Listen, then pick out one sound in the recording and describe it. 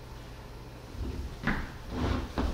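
A heavy speaker thuds as it is set down on the floor.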